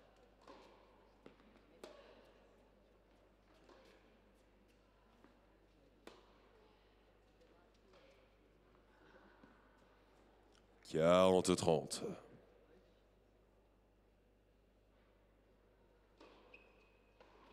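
A tennis ball is struck back and forth with rackets, with sharp pops.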